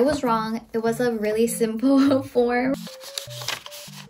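Paper rustles in a young woman's hands.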